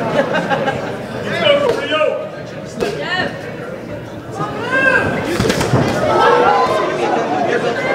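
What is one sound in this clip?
A crowd of spectators shouts and cheers loudly in a large hall.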